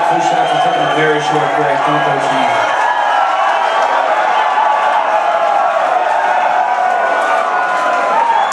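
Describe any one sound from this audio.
Loud live music plays in a large echoing hall.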